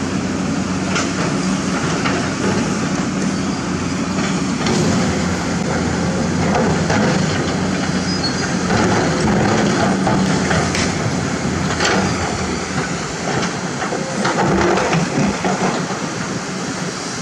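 A diesel crawler excavator engine rumbles under load.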